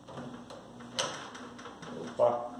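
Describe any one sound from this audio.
A microwave oven door clicks open.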